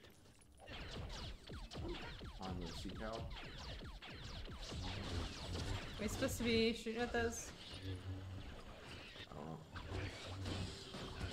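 Blaster shots fire in quick bursts in a video game.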